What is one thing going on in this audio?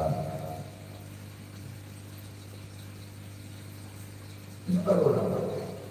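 A woman speaks into a microphone over a loudspeaker, with pauses.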